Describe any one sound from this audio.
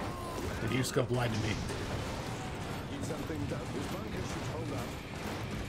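An explosion booms with a fiery blast.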